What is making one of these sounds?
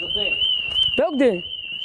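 A young man calls out loudly close by.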